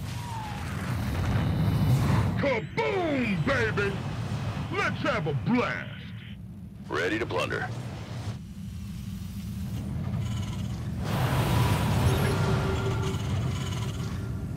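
Gunfire and laser blasts crackle during a game battle.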